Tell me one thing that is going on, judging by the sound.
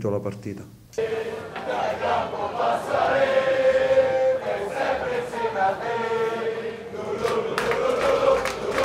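A crowd of fans chants and sings in unison some distance away.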